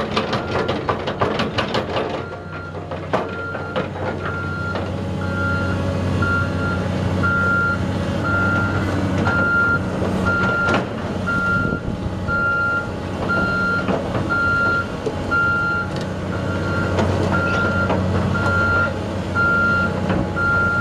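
Steel tracks clank and squeak as a heavy excavator crawls.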